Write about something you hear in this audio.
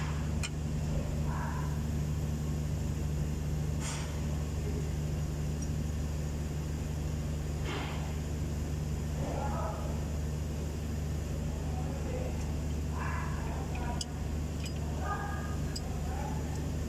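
Metal parts clink and click as a hand works on the engine.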